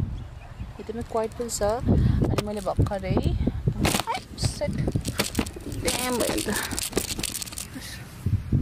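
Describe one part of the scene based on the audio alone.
A young woman talks casually, close to the microphone.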